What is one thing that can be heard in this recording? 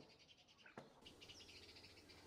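Water bubbles and boils in a pot.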